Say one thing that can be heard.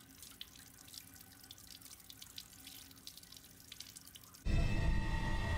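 Water runs from a tap and splashes over hands.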